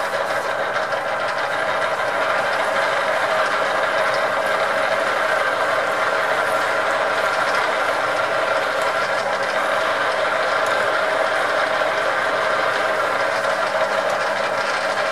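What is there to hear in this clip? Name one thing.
A drill bit grinds and scrapes into spinning metal.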